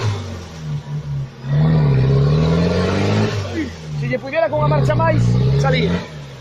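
An off-road vehicle's engine revs hard in bursts.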